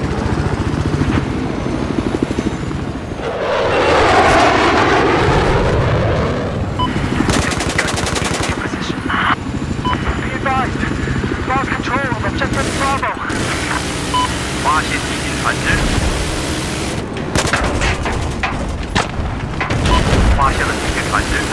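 A helicopter's rotor thumps steadily and loudly.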